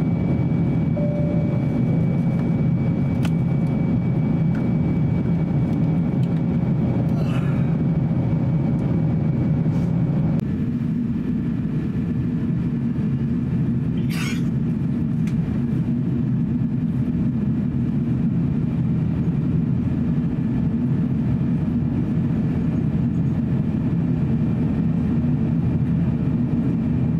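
Jet engines roar steadily in a loud, low, constant drone.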